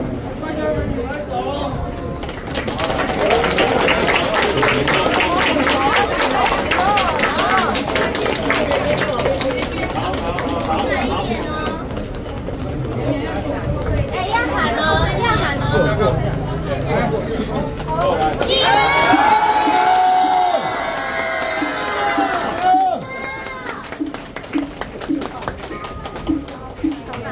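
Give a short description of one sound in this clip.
A crowd of men and women talk and call out loudly close by.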